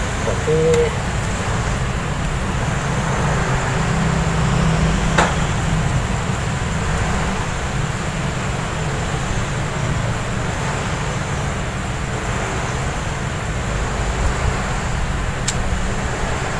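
Pruning shears snip sharply at a branch now and then.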